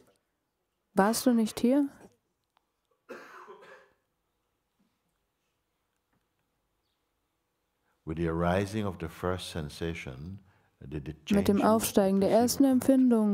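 An elderly man speaks calmly and thoughtfully, close by, with long pauses.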